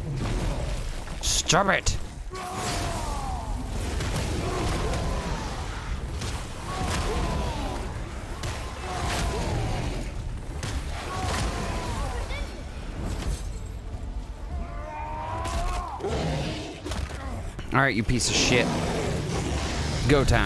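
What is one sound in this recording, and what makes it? A monster roars loudly.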